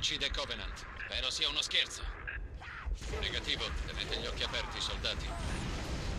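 An energy pistol fires in rapid zapping shots.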